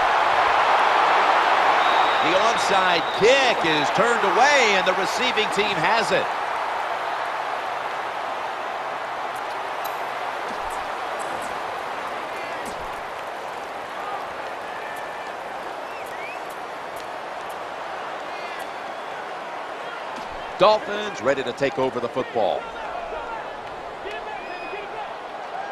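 A large stadium crowd roars and cheers, loud at first and then settling to a steady murmur.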